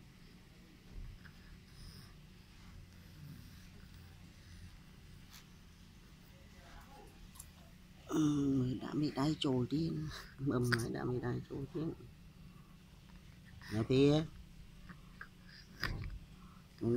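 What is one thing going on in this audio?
A baby sucks softly on a feeding bottle.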